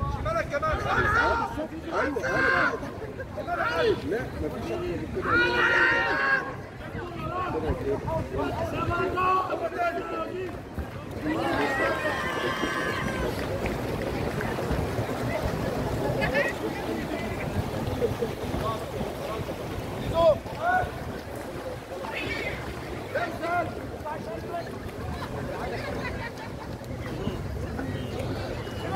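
A crowd of spectators shouts and cheers from a distance.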